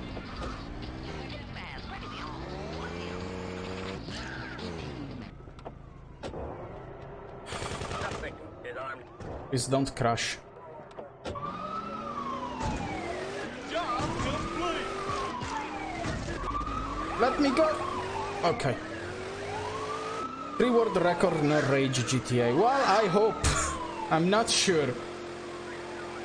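A police siren wails up and down repeatedly.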